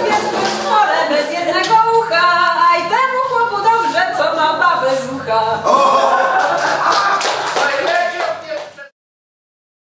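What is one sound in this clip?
Several women sing a folk song together.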